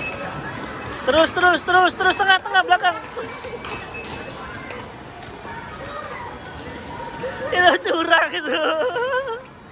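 An arcade game plays bouncy electronic jingles in short bursts.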